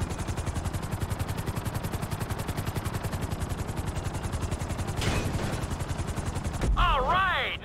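A helicopter's rotor thumps rapidly and steadily.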